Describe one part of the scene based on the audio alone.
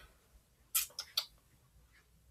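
Playing cards shuffle and riffle with a short crisp patter.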